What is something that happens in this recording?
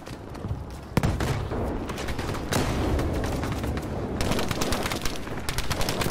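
An explosion booms close by, followed by a roaring fire.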